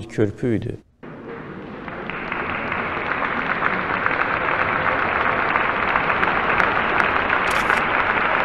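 A crowd applauds loudly in a large hall.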